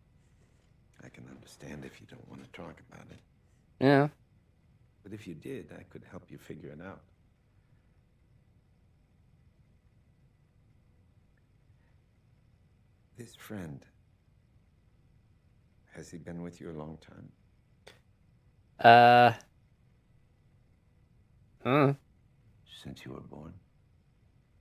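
A middle-aged man speaks calmly and gently.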